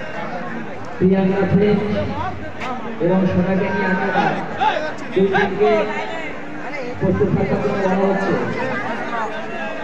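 A man nearby talks loudly with animation.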